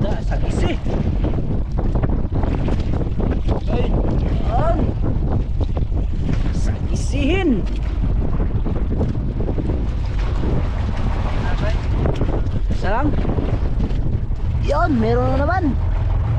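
Water splashes against a small boat's hull.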